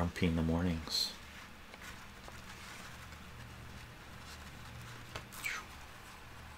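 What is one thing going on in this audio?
Paper pages rustle softly as they are handled.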